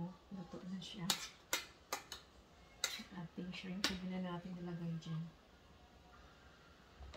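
A spoon clinks against a metal pot.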